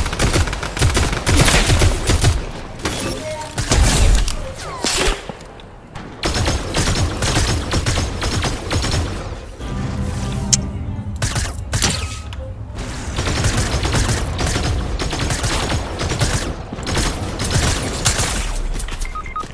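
Rapid gunfire bursts out in repeated volleys.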